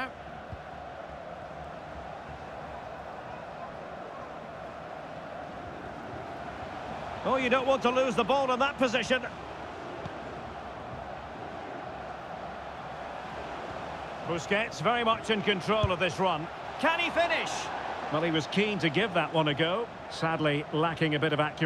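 A large crowd murmurs steadily in a stadium.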